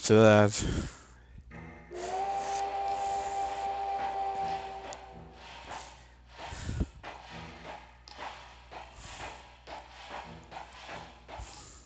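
A steam engine chugs along in quick, even puffs.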